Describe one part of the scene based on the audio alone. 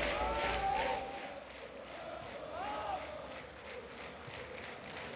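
A large stadium crowd chants and cheers outdoors.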